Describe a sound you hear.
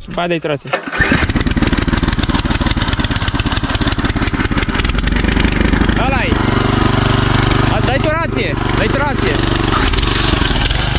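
A small petrol engine starts and runs loudly, rattling steadily.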